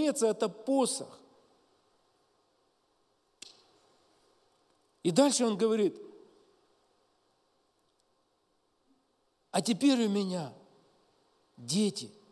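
A middle-aged man speaks slowly and solemnly into a microphone, with long pauses, in an echoing hall.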